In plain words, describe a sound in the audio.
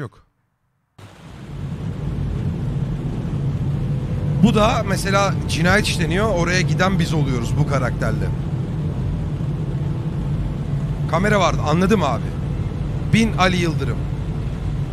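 Heavy rain pours down on a car's windscreen.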